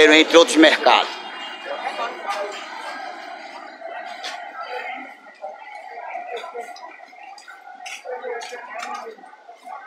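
A crowd of people chatters quietly in the background.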